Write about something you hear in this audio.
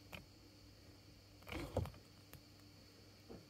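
Plastic clicks and taps as it is handled close by.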